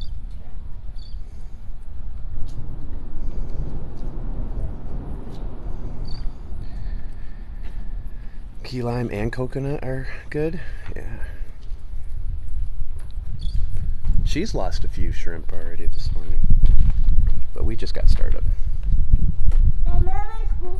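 Water laps gently against bridge pilings.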